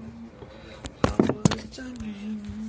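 Sharp knocks bump against a microphone.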